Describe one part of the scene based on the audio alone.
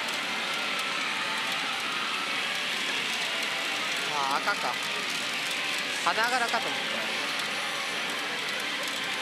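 Metal balls rattle through a gaming machine.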